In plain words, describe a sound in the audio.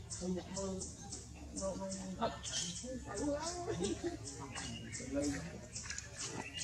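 A baby macaque whimpers and cries.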